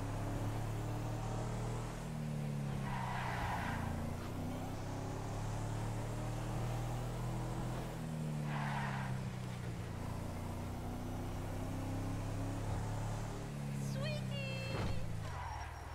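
A vehicle engine hums steadily and shifts up and down in pitch as it drives.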